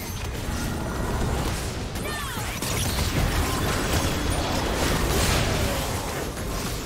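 Spell effects whoosh and crackle in a fast game battle.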